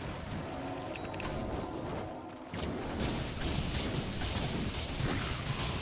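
Magic blasts and weapon strikes clash in a fast fight.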